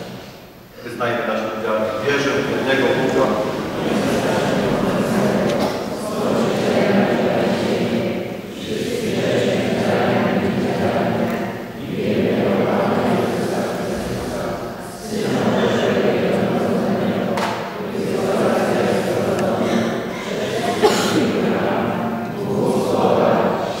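A group of men chant together in a large echoing hall.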